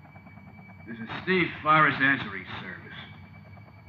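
A deep-voiced man talks on a telephone, close by.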